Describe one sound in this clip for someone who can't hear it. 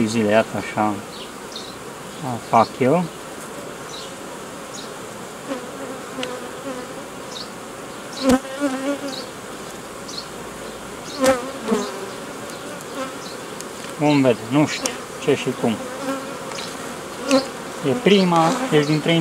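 Bees buzz steadily around an open hive.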